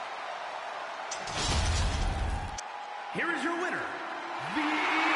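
A large crowd cheers and roars in a big echoing arena.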